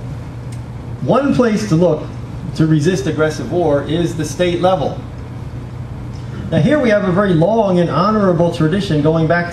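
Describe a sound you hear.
A man speaks through a microphone and loudspeaker, with pauses.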